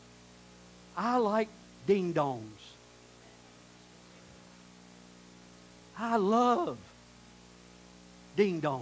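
A man speaks slowly with long pauses through a microphone in a large room.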